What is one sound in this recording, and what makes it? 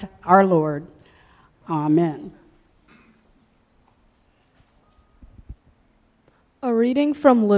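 A woman chants in long, drawn-out phrases, with pauses between them.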